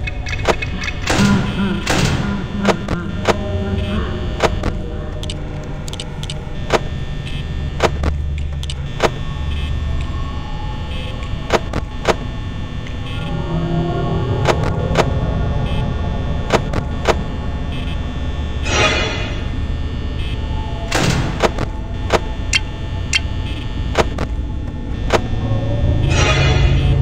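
A small fan whirs steadily.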